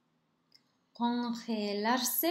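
A woman speaks loudly and animatedly close by.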